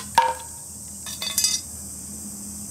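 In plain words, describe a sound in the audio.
Bamboo cracks as it splits apart.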